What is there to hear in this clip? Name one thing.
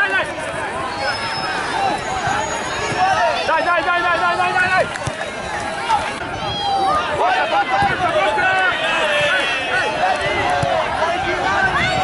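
Young children shout to each other on a field.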